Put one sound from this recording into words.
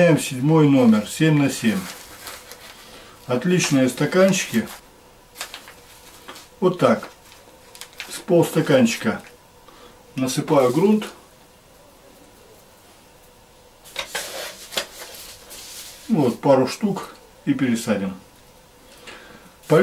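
Loose soil rustles softly as it is scooped and poured into small plastic pots.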